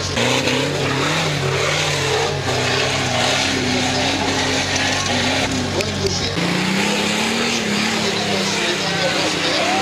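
An off-road vehicle's engine roars and revs hard.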